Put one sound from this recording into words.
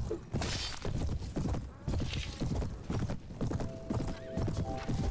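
Heavy steps thud quickly and rhythmically over open ground.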